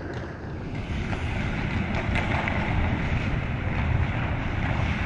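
Skates scrape and glide across ice in a large echoing rink.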